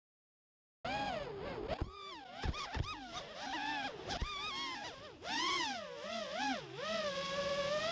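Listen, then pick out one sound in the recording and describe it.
Small drone motors whine loudly, rising and falling in pitch as the drone swoops and turns.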